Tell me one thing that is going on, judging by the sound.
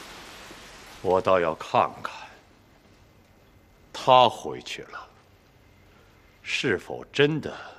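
A man speaks slowly and sternly in short phrases.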